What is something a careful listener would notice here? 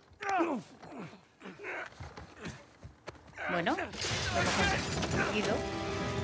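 A man shouts and grunts with effort.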